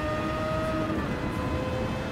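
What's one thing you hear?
A race car engine drops in pitch as it shifts gear.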